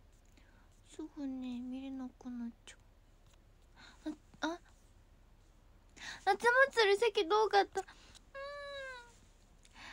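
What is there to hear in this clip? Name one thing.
A young woman speaks softly and playfully close to a microphone, with pauses.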